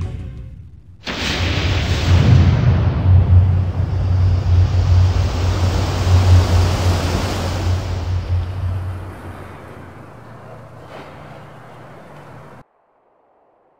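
Ocean waves roar and crash loudly, then fade.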